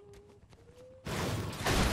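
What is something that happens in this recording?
A shotgun is drawn with a metallic clatter.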